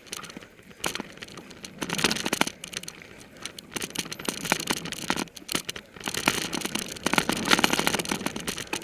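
A bicycle frame clatters and rattles over bumps.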